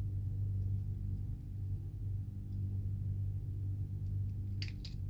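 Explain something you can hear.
Small plastic parts click and snap together in someone's hands.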